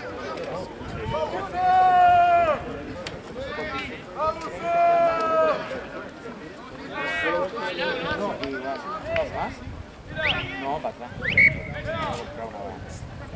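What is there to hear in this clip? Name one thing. Spectators shout loudly nearby outdoors.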